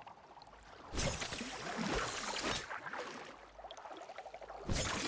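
A spear splashes into water.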